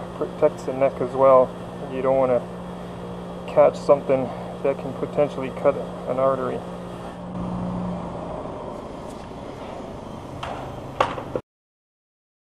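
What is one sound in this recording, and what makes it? A bench grinder motor hums steadily.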